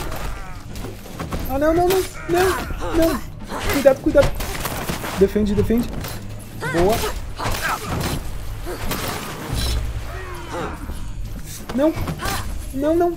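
Weapons strike and thud in a close fight.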